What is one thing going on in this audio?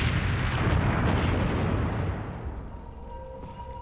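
A deep rumble of an explosion roars and slowly fades.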